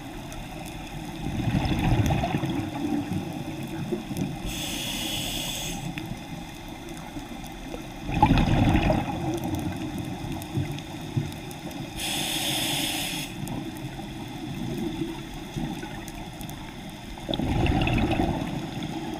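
Bubbles from a diver's breathing gear gurgle and rumble in bursts underwater.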